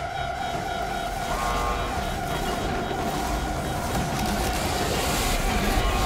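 A strong wind roars and grows louder.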